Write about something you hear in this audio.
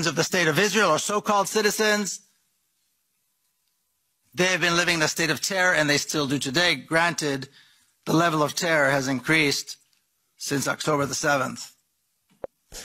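A middle-aged man speaks forcefully into a microphone, with pauses.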